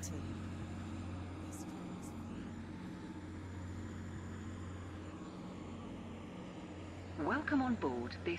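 A diesel train engine hums steadily as the train rolls along the track.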